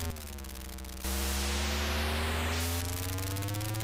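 A harsh electronic hiss of tyres skidding plays during a drift.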